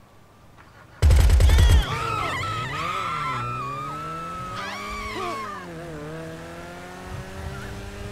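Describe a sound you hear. A car engine revs loudly and accelerates, rising and falling in pitch.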